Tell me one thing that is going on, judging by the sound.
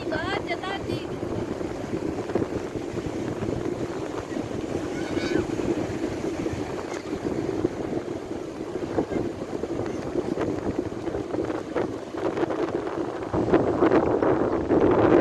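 Waves roar and wash steadily onto the shore.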